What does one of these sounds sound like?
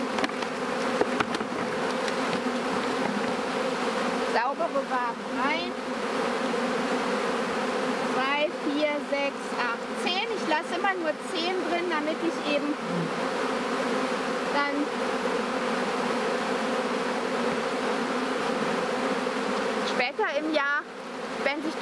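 Bees buzz steadily and loudly close by.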